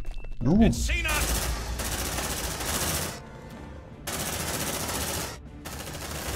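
Rapid gunfire crackles from a game.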